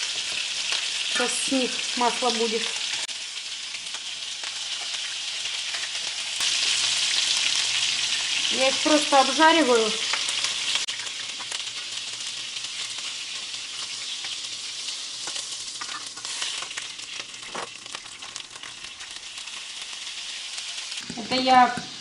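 Meatballs sizzle steadily in a hot frying pan.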